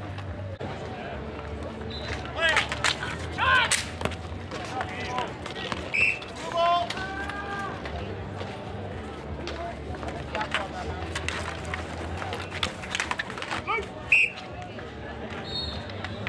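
Hockey sticks clack against a plastic ball and each other on asphalt.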